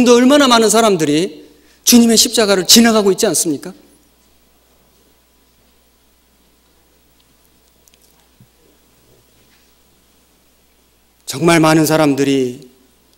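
A man speaks forcefully into a microphone, pausing between phrases.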